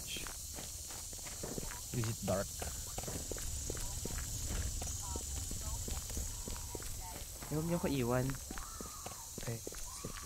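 Footsteps tread steadily on the ground.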